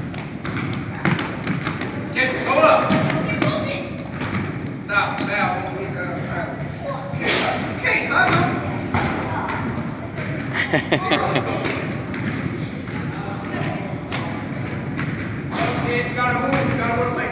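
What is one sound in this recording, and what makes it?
A basketball bounces on a wooden floor with sharp thuds.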